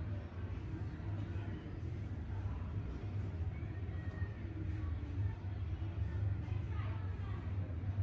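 Hands knead and rub a man's bare shoulder and upper arm.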